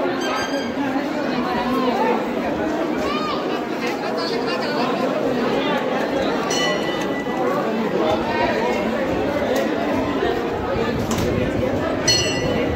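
A large crowd of men and women talks and shouts outdoors.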